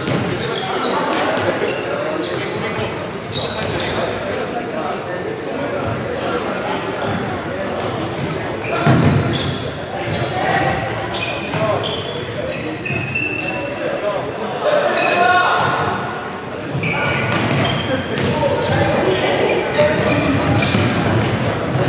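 Men shout to one another across the hall.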